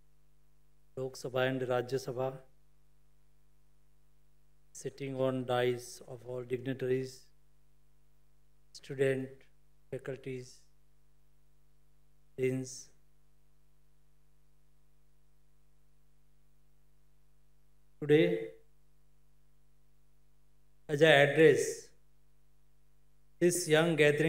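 A man speaks slowly and formally into a microphone over loudspeakers, with pauses between phrases.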